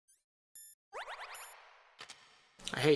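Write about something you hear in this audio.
A short electronic chime sounds from a game menu.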